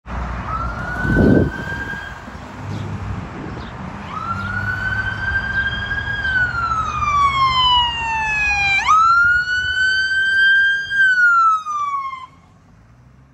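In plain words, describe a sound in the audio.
A siren wails loudly close by, rising and falling, then cuts off.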